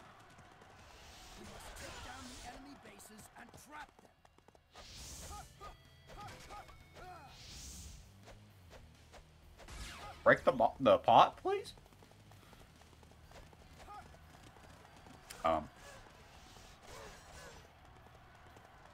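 Weapons swish and clash in a fast battle.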